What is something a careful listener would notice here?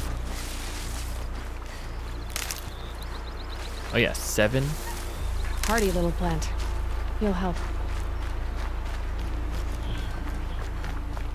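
Footsteps crunch over grass and dirt.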